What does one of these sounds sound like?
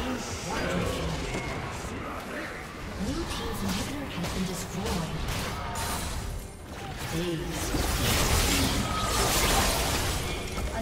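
Magic spells burst and whoosh in a busy fight.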